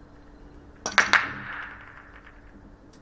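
Billiard balls clatter against each other and the cushions as they scatter.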